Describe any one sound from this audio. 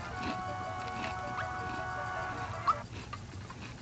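Video game music plays a short bright tune.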